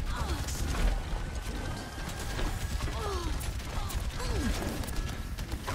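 Gunfire and ability effects crackle and whoosh.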